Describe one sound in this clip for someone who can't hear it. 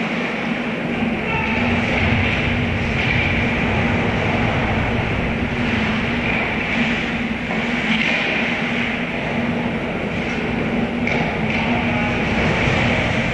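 Ice skates scrape and swish on ice in a large echoing rink.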